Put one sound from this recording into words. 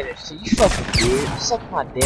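A weapon fires with a bright zap.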